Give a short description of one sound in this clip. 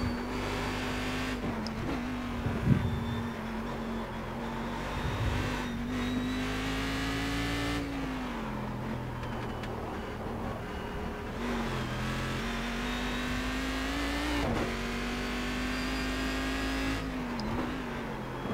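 A racing car engine roars steadily, rising and falling in pitch as gears change.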